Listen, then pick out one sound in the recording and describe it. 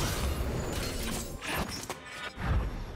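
Spell effects and hits crackle and burst during a fight.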